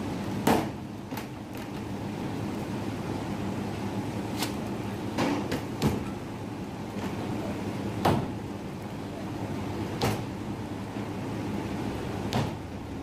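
Roti canai dough slaps onto a steel counter.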